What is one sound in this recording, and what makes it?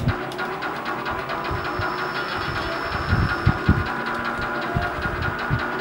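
A racing game's car engine roars steadily from a television.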